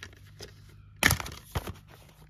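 A plastic disc case snaps open with a sharp click.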